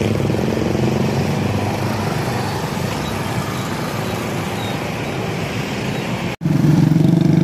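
Motorcycle engines idle and rumble nearby in heavy traffic.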